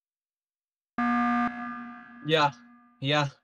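A game alarm blares once, briefly.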